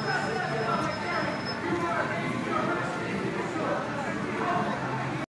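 A crowd of people chatters outdoors.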